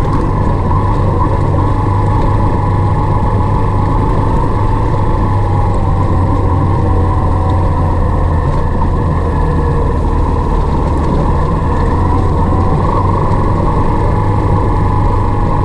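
Tyres crunch and rumble over a gravel track.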